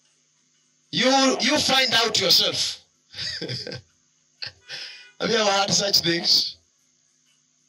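A man preaches with animation through a microphone and loudspeakers.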